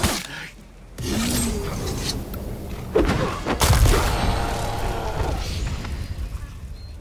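A whooshing magical burst swells and fades.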